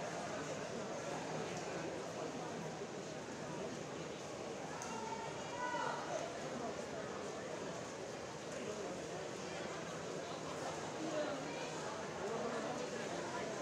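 A swimmer splashes steadily through the water.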